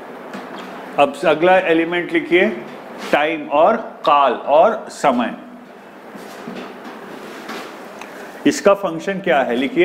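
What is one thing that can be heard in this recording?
A man speaks calmly and explains into a clip-on microphone.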